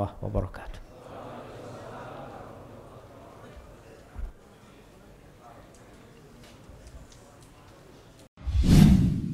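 A crowd murmurs and shuffles in a large hall.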